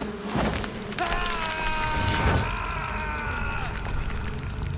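A man screams as he falls.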